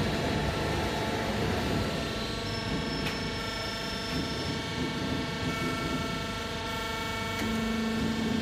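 A metal forming machine hums and rumbles steadily.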